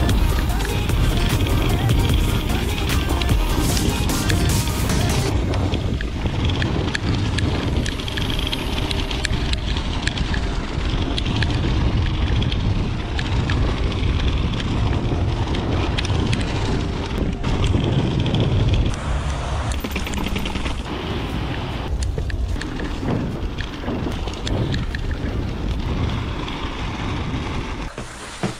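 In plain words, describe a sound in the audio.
Bicycle tyres crunch over packed snow.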